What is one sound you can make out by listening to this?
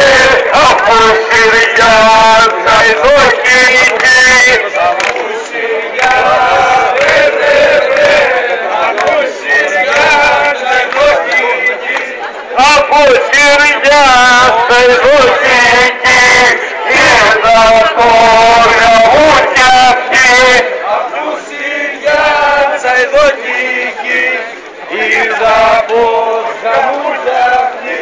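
A crowd of men and women sings loudly close by outdoors.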